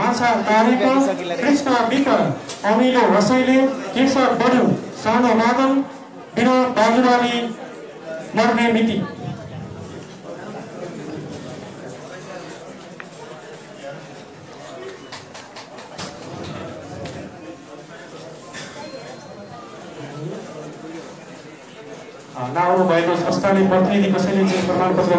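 Voices sing loudly through a loudspeaker in an echoing hall.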